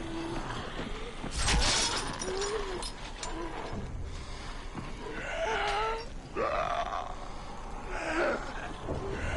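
Creatures growl and snarl nearby.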